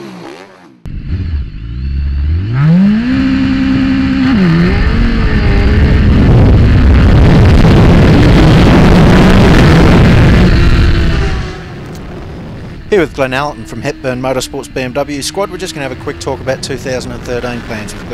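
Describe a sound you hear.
A motorcycle engine revs hard and its pitch climbs as it accelerates.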